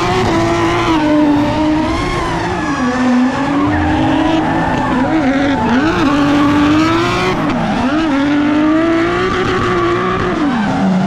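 A car engine revs hard and wails as it rises and falls in pitch.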